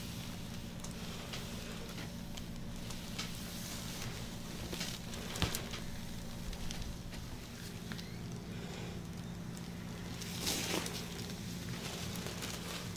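Gloved hands rub and squish over oiled skin.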